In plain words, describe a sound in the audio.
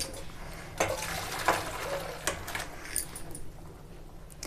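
Water splashes and drains through a metal colander.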